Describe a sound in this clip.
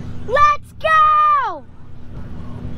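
A young man shouts loudly close by.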